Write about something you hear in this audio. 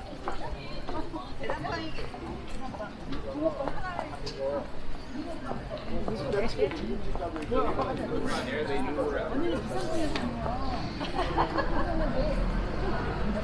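Middle-aged women chat nearby as they walk.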